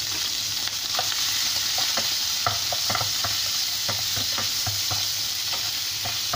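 A spatula scrapes and knocks against a pan.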